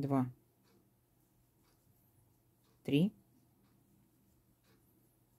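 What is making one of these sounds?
A crochet hook softly scrapes and pulls through yarn.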